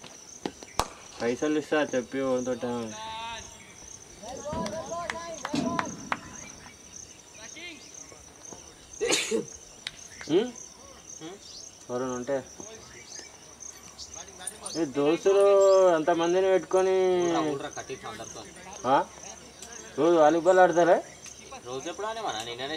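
Men call out and shout across an open field.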